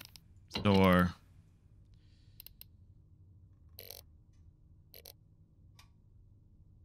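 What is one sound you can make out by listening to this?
Soft menu clicks tick as items are scrolled.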